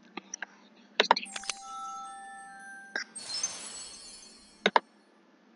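A bright, shimmering game chime rings as a found item is collected.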